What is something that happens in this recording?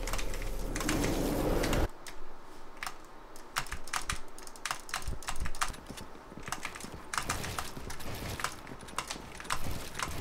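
Wooden building pieces snap into place with quick, sharp clacks.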